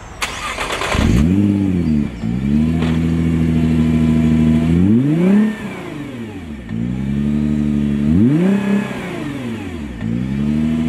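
A car engine idles and revs up sharply several times, its exhaust roaring and burbling.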